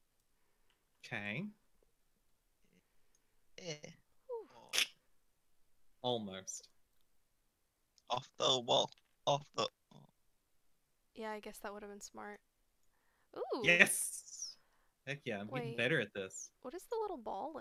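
A young woman talks casually into a microphone, in short bursts.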